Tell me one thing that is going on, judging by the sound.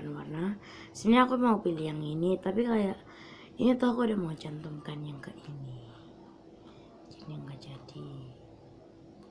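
A girl speaks close by with animation.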